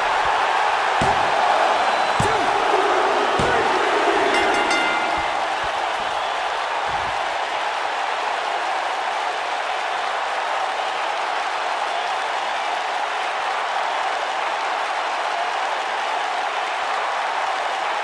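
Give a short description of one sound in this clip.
A large crowd cheers and roars steadily throughout.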